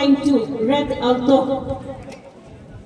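A woman speaks loudly and close by.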